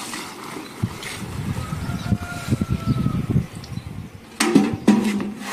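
Water gushes into a bucket.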